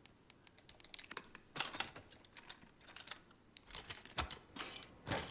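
A small metal pick clicks and scrapes inside a padlock.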